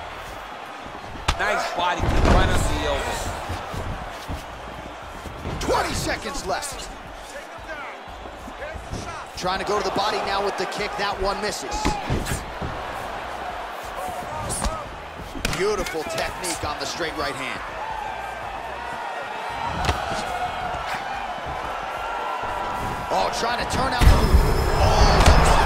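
Blows thud as fighters kick and punch.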